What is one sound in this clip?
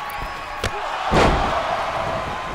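A heavy body slams down hard onto a wrestling ring.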